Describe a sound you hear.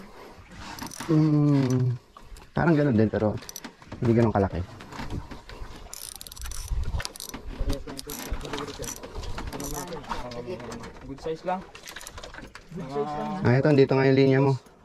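A man talks loudly and excitedly close by.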